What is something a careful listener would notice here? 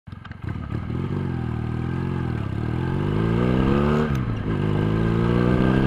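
A motorcycle engine revs up and down close by.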